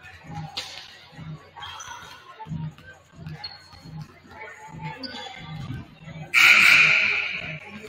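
Basketballs bounce repeatedly on a hardwood floor in a large echoing gym.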